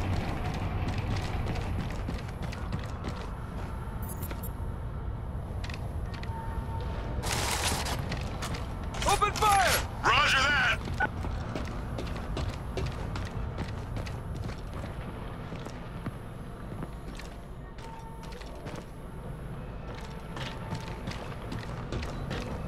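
Heavy boots clank on metal steps.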